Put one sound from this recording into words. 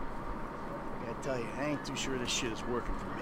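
A man speaks with frustration, close by.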